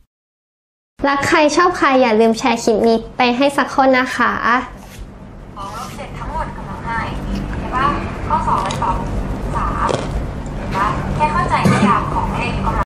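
A young woman talks cheerfully and close by.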